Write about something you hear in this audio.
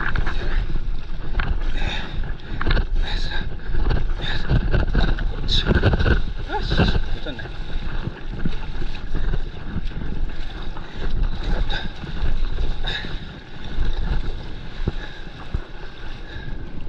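A paddle dips and splashes in the water.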